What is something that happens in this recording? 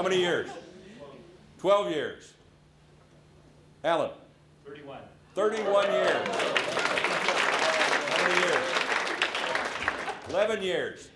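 A man speaks loudly to the room in short bursts.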